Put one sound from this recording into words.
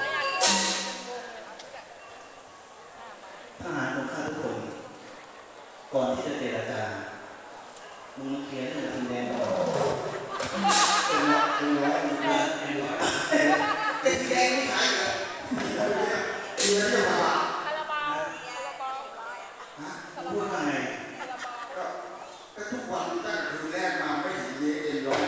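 A young performer sings loudly through a microphone.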